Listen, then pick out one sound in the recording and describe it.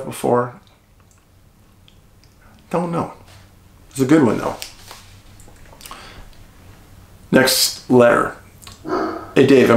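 A middle-aged man speaks calmly and close by, in short bursts with pauses.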